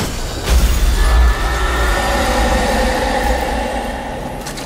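A creature lets out a ghostly, wavering shriek.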